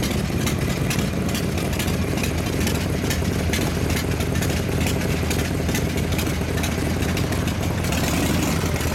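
A motorcycle engine idles with a deep, loud rumble close by.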